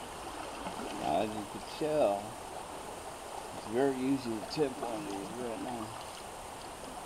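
A man speaks nearby outdoors.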